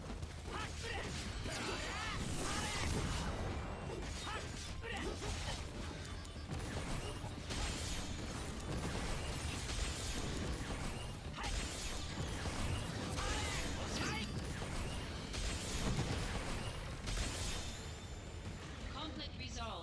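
Sword strikes and magic blasts clash in a video game battle.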